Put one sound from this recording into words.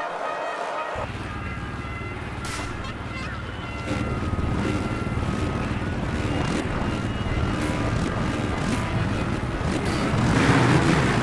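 Dirt bike engines idle and rev in a group.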